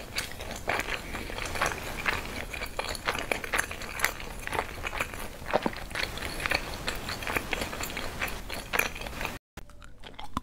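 Crispy food crunches loudly as it is bitten and chewed close to a microphone.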